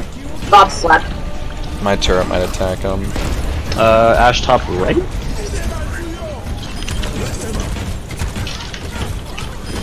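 A game gun fires rapid bursts.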